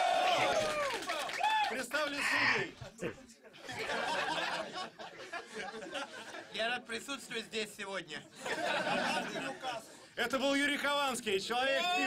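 A crowd of young men laughs and cheers.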